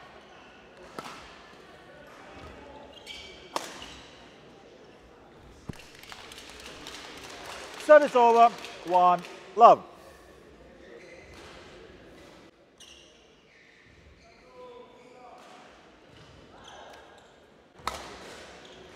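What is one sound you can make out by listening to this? Rackets strike a shuttlecock with sharp thwacks.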